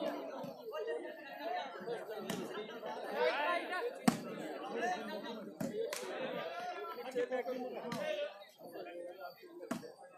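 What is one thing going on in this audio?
A crowd of men chatter and shout outdoors.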